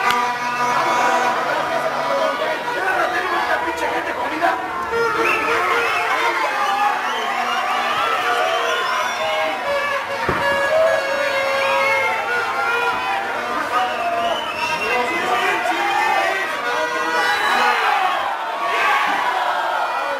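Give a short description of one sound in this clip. A crowd of spectators shouts and cheers in a large, echoing space.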